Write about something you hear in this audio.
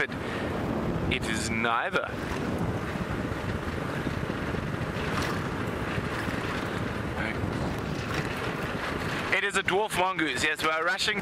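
A vehicle engine rumbles steadily as it drives over a dirt road.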